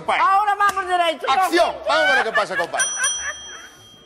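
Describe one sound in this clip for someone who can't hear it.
An elderly woman laughs heartily.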